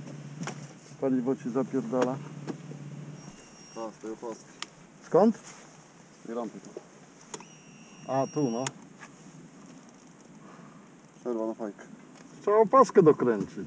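A man talks loudly outdoors in short bursts.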